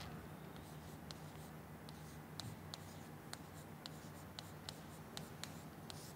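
A marker taps and scratches on a board.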